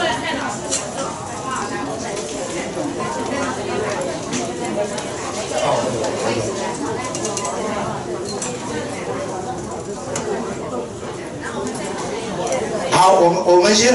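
A crowd of people chatter and murmur.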